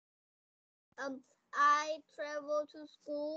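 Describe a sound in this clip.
A young child speaks loudly over an online call.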